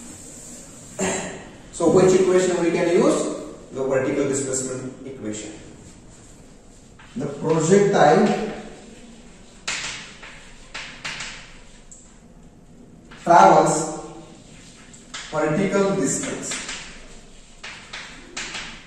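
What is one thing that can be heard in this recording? A man speaks calmly and clearly, close by, explaining in a slightly echoing room.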